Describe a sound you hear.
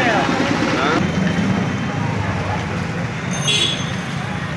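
Motorcycles rumble past close by.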